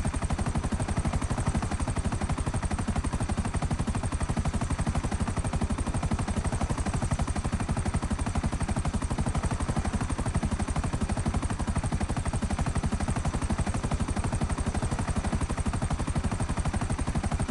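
A helicopter's rotor thumps rapidly and steadily close by.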